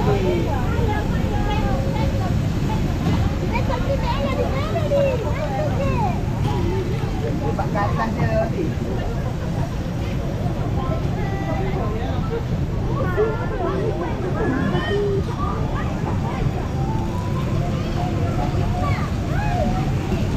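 A fairground ride hums and rumbles as it turns.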